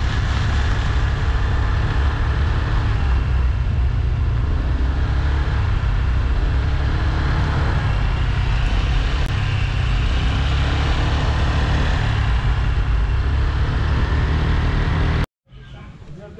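Strong wind rumbles and buffets loudly.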